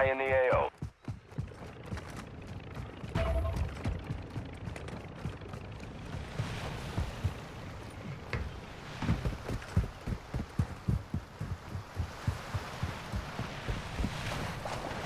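Footsteps thud quickly on grass and sand.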